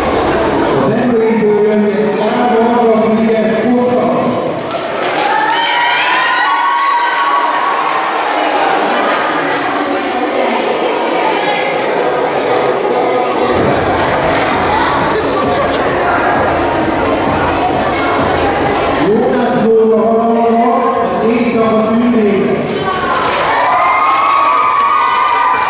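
An elderly man speaks through a microphone and loudspeakers.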